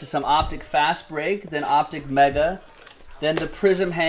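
Cardboard packaging rustles and crinkles in hands.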